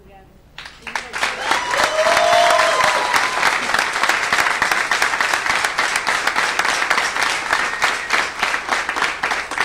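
A choir of men and women sings loudly together.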